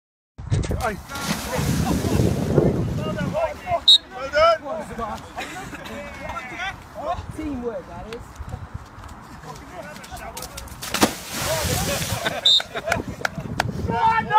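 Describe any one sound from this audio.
Young men shout and cheer outdoors nearby.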